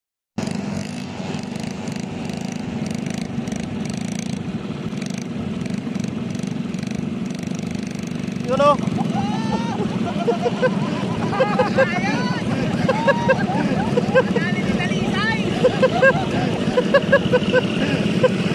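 Quad bike engines rumble and whine nearby.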